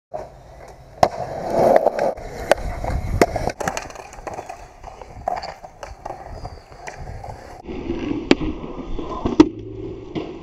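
A skateboard clacks sharply as it lands and hits the ground.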